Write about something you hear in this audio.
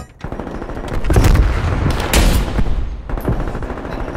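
A sniper rifle fires a loud, booming shot.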